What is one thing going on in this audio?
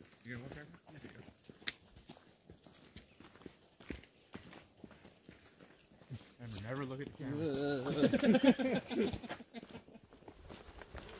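Hikers' footsteps crunch on a dirt trail outdoors.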